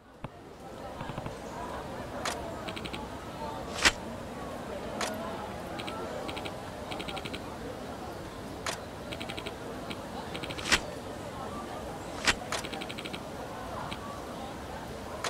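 Short electronic blips tick rapidly in quick bursts.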